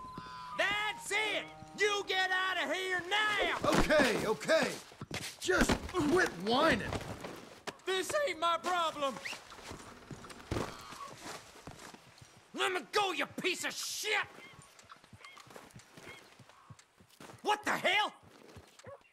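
A man shouts in alarm nearby.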